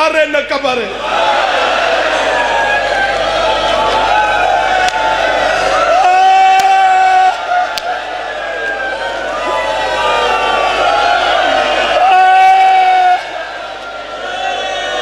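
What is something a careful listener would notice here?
A large crowd of men chants loudly together.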